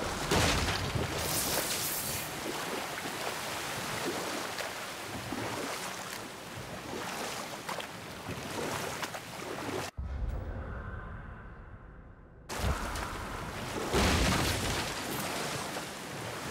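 A waterfall roars and splashes nearby.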